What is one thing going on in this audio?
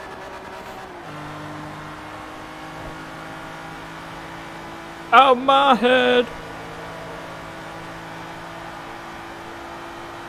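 A sports car engine hums steadily at high speed.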